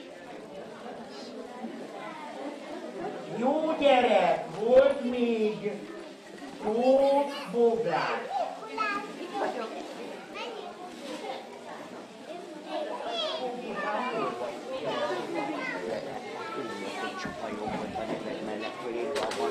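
Young children chatter and call out in a room full of voices.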